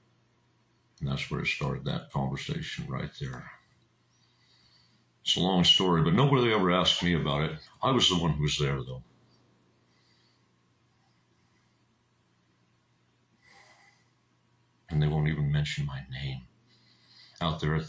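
A middle-aged man speaks calmly into a close microphone, with pauses.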